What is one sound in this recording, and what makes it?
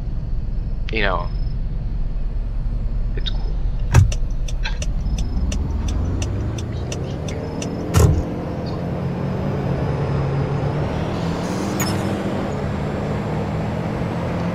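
A small car engine hums low and rises in pitch as the car speeds up.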